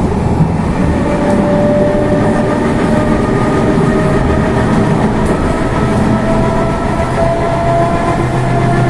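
A train's motor whines with a rising pitch.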